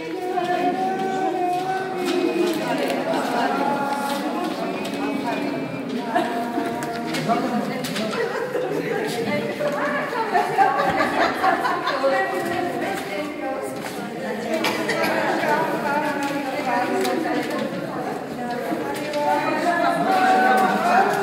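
Paper ballots rustle and are shuffled into stacks.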